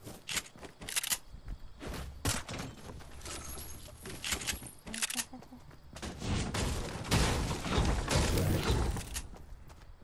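A game character's footsteps patter quickly over grass.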